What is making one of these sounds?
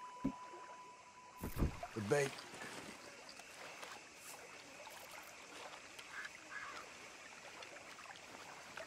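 Calm water laps softly at the shore.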